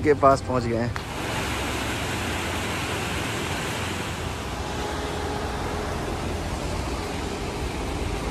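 Water rushes over rocks in a stream below.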